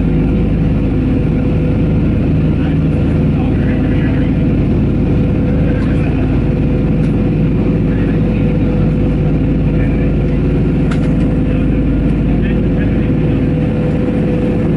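A man speaks calmly over a headset microphone.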